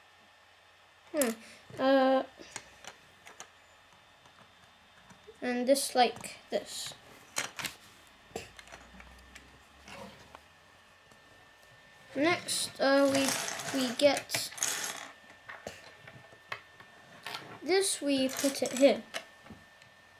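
Small plastic toy bricks click and snap together.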